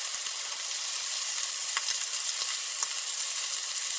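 Chopsticks tap against a pan.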